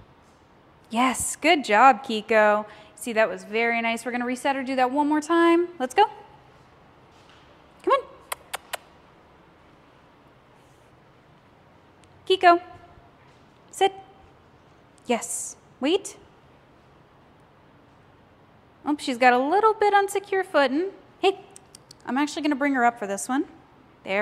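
A woman talks calmly to a dog nearby, with short pauses.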